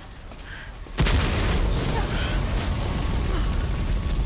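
A fire roars loudly.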